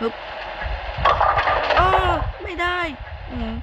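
Bowling pins crash and clatter as the ball strikes them.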